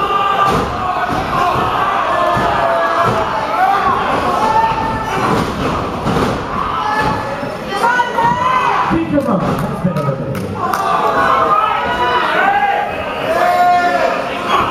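Bodies thud against the ring ropes and mat.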